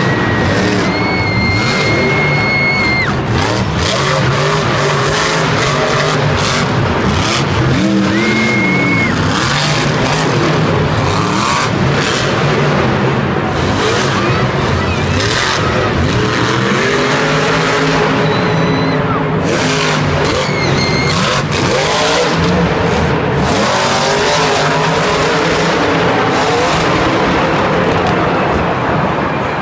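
A large crowd cheers and shouts throughout.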